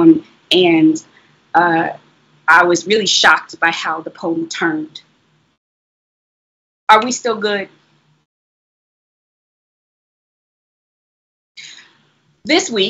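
A young woman reads aloud expressively through a microphone, with pauses.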